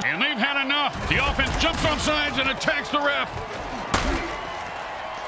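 Bodies crash together in heavy tackles.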